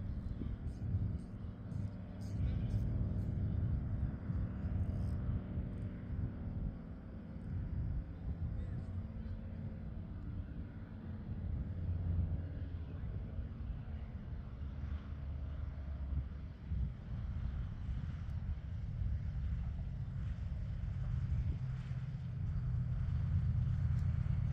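A propeller plane drones steadily as it comes in low and lands.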